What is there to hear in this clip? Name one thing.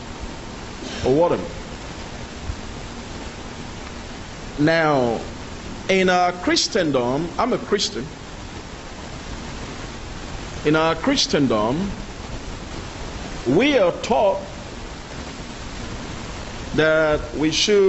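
A man speaks into a microphone in short, measured bursts with pauses between.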